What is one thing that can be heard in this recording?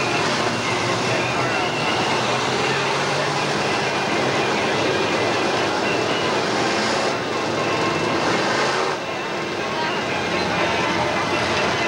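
A crowd cheers and murmurs nearby.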